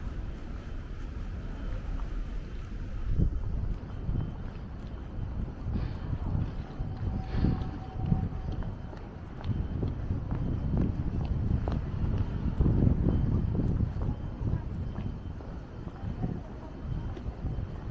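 Footsteps tap on paving stones nearby.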